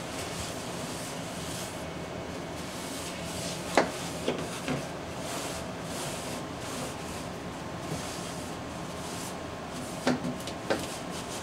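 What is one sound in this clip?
Water splashes as a hand scoops it in a tank.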